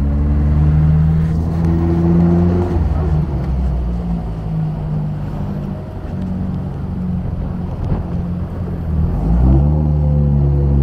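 A car engine hums and rumbles steadily, rising in pitch as it revs up near the end.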